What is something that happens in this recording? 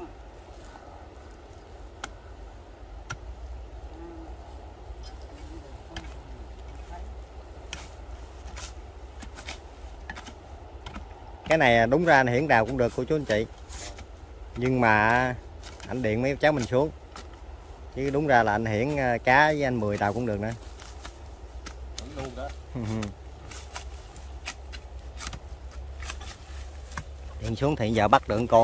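Metal tools dig and scrape into dry soil.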